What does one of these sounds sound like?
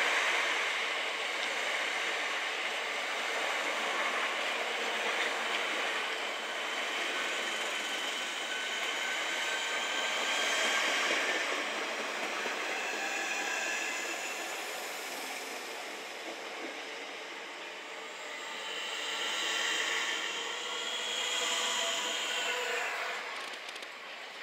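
An electric train rolls past close by with a steady rumble and rattle.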